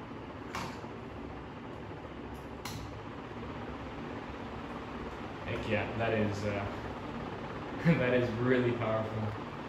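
A ceiling fan whirs steadily.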